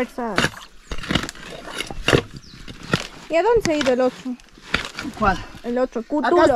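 A tool chops into wet earth and roots with dull thuds.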